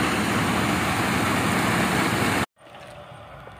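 A concrete mixer truck engine runs loudly nearby.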